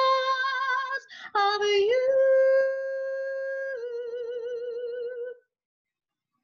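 A woman sings long, wavering held notes over an online call.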